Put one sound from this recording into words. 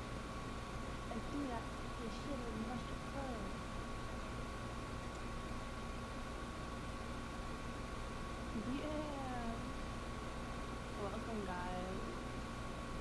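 A young woman talks casually and close up.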